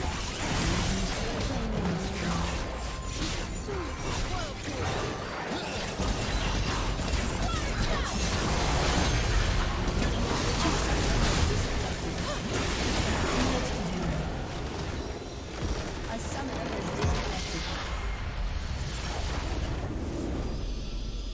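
Spell blasts, clashes and explosions crackle in a busy video game battle.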